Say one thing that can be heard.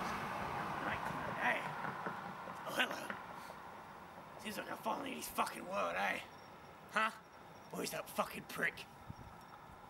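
A young man talks nearby with animation.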